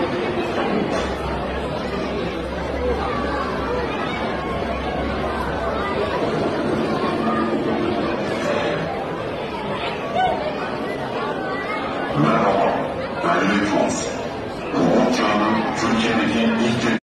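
A large crowd chatters and murmurs in an echoing hall.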